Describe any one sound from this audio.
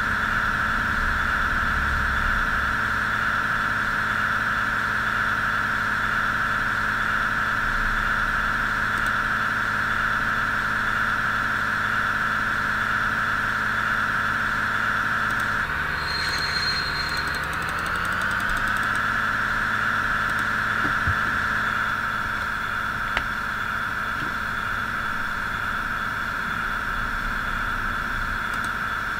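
A train engine hums steadily, dipping briefly and then rising back.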